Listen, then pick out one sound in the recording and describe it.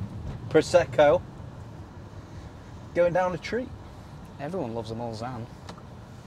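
A car engine hums steadily inside a cabin.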